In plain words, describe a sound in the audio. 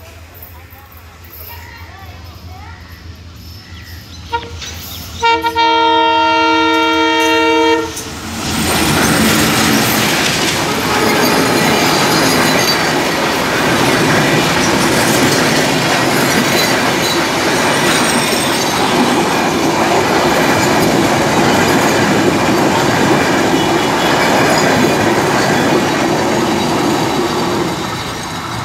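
A diesel train approaches and rumbles past close by.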